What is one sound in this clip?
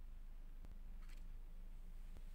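A sheet of paper is set down on a table.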